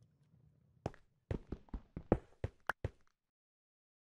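Stone blocks crack and crumble as they are broken.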